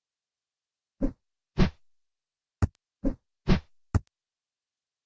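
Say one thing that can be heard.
Short cartoon jump sounds pop several times in quick succession.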